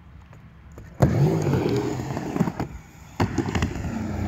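A skateboard clacks against the ground.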